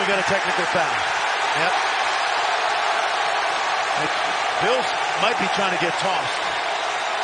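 A middle-aged man shouts angrily nearby.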